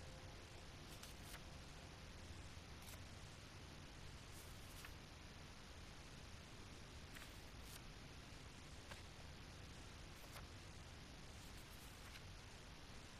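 Small tiles click as they are turned.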